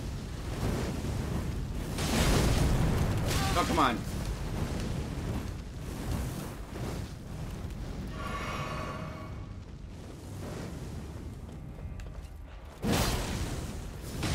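Swords clash with sharp metallic hits.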